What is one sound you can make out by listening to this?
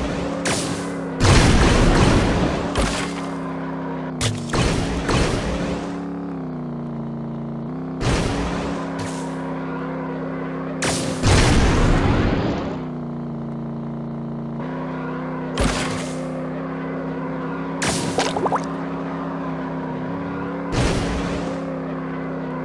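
Boost bursts whoosh loudly now and then.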